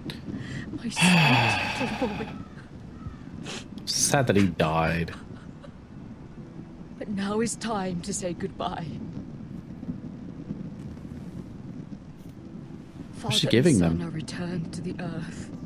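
A young man speaks into a close microphone.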